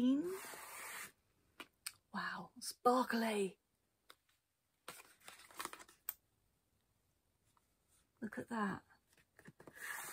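Small cardboard boxes rustle and tap as they are opened.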